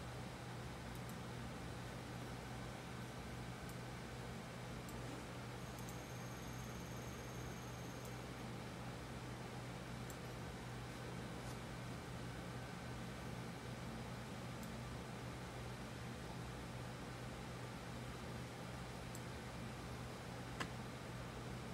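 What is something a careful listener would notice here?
A computer mouse clicks softly now and then.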